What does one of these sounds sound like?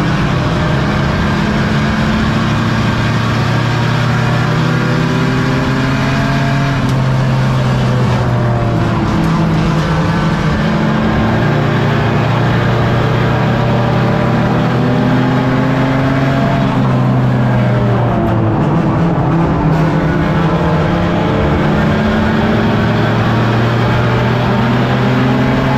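A loud race car engine roars up close, revving up and down.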